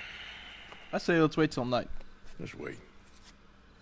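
A younger man answers in a low, calm voice.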